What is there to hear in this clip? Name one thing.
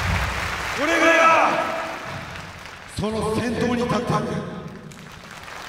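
A man shouts into a handheld microphone, his voice booming over loudspeakers in a large echoing hall.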